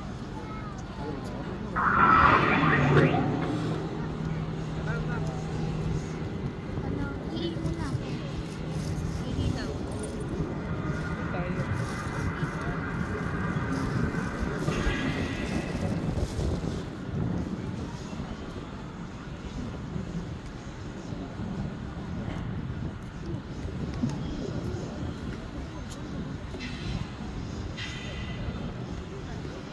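A crowd of people murmurs outdoors.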